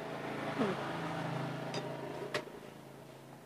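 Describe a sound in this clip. A spoon clinks against a plate.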